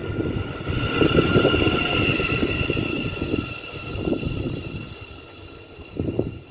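A train rushes past close by with a loud rumble and clatter.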